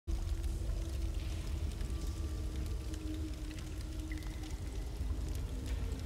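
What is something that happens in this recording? A waterfall rushes steadily in the background.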